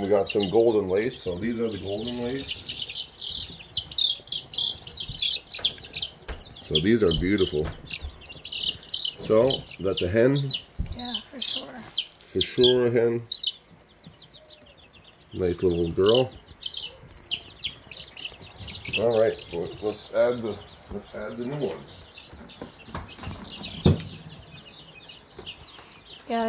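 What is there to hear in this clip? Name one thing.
Chicks peep rapidly and shrilly close by.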